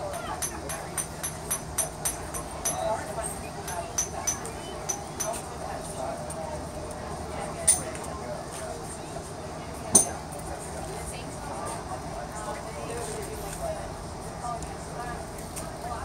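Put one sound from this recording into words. A pencil taps and scratches on paper.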